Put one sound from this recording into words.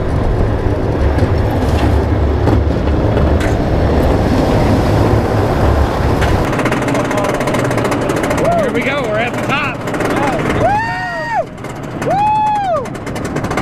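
A roller coaster rumbles loudly along its track.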